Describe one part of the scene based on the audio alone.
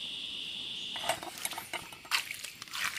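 Shallow water splashes as hands lift a stone.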